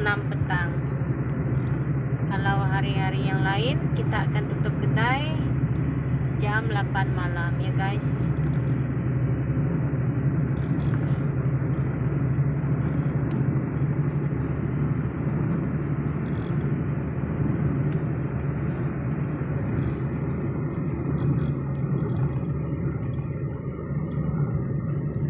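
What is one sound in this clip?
Tyres roll on a paved road with a steady rumble.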